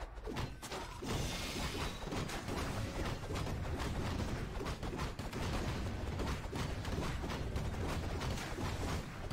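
Swords clash and magic crackles in a busy battle.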